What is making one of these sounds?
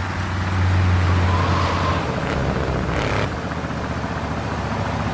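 A car engine roars steadily as the car speeds along.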